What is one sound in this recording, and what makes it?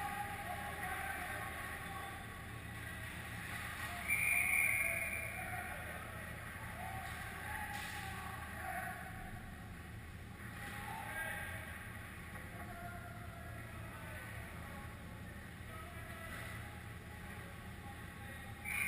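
Skates scrape on ice far off in a large echoing hall.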